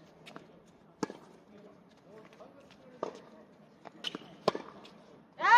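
Tennis balls are struck with sharp pops from rackets.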